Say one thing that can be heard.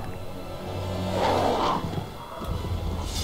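A beast snarls and growls.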